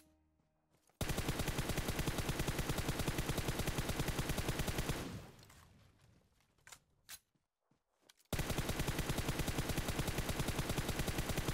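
Rapid automatic gunfire rattles in long bursts.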